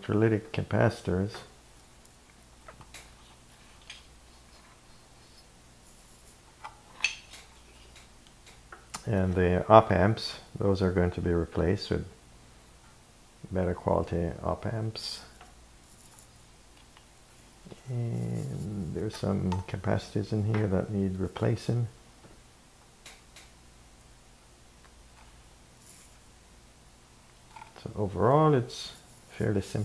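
Loose wires and metal parts rattle softly as a device is handled.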